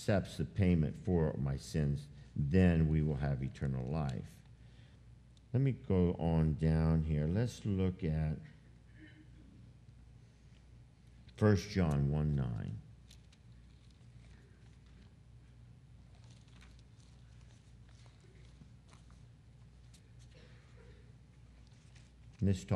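An elderly man speaks calmly through a microphone in a large room, pausing between phrases.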